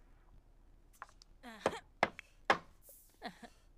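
A hammer knocks on wood in quick taps.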